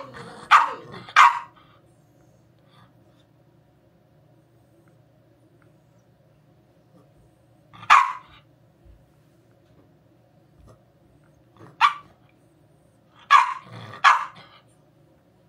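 A small dog barks sharply in short bursts close by.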